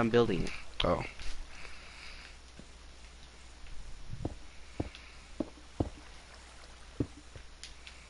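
Stone blocks are chipped and broken with short knocks.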